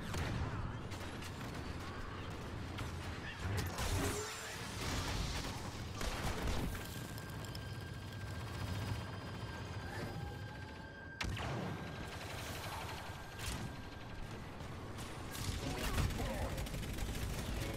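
Blaster shots zap and crack.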